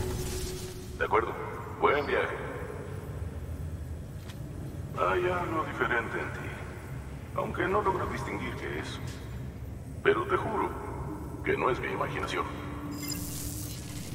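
A man speaks calmly, as if through a radio.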